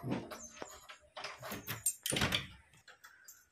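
A key rattles and clicks in a door lock.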